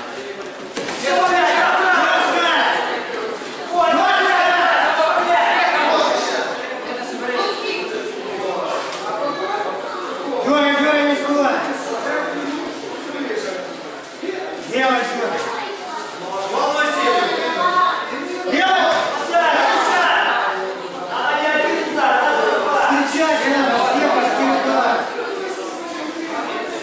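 A crowd of men and women shouts encouragement loudly in an echoing hall.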